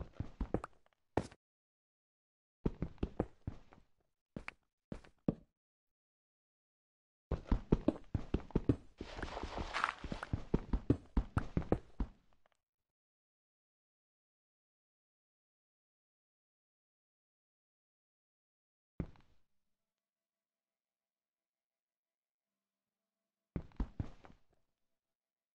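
A pick chips at stone with quick, dry knocks.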